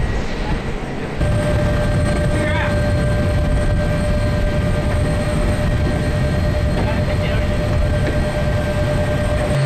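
A wheeled cart is pushed up a metal loading ramp.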